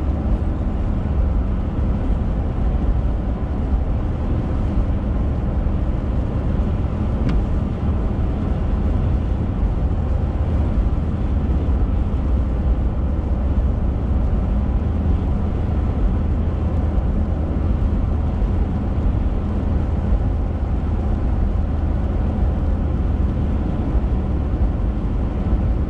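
Raindrops patter lightly on the windscreen.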